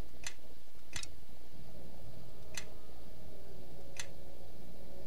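Short sharp interface clicks sound a few times.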